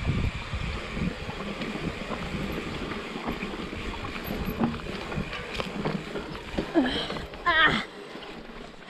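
Bicycle tyres rattle and crunch over a rough dirt trail.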